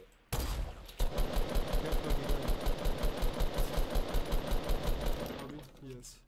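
An automatic rifle fires a long rapid burst.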